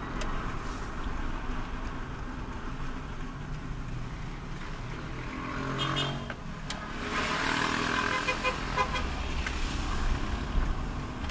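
Tyres roll over a rough road surface.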